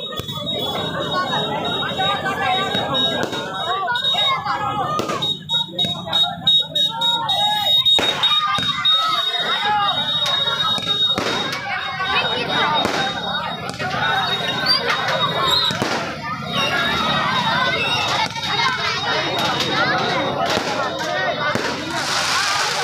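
Firecrackers bang and crackle in rapid bursts.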